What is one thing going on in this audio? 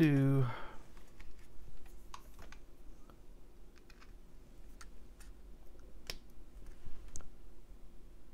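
A small metal tool taps and clicks against electronic parts.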